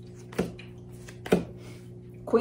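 Cards tap and shuffle against each other.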